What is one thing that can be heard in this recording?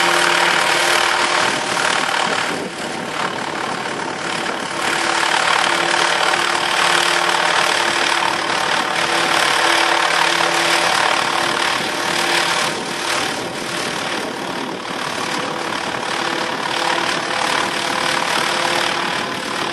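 A model helicopter's engine whines steadily overhead, rising and falling slightly.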